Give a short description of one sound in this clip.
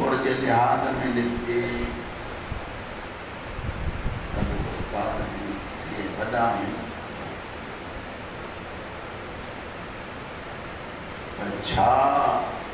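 A middle-aged man recites loudly through a microphone in a large echoing hall.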